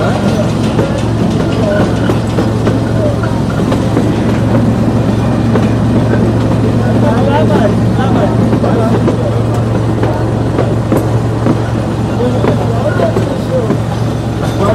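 A small open train rumbles steadily along its rails.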